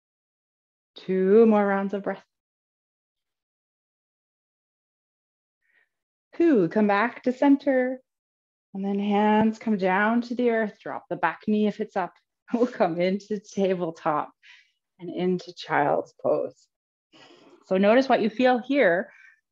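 A woman speaks calmly and clearly into a nearby microphone.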